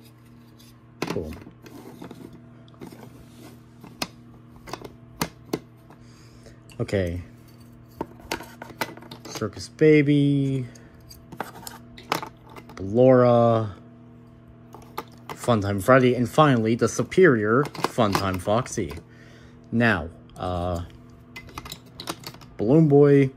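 Small plastic cases click and clatter as they are handled.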